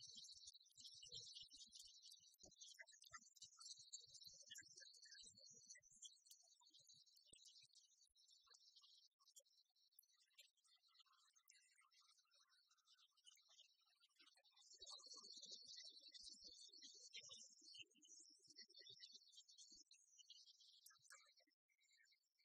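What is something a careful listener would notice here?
Rackets strike a shuttlecock back and forth.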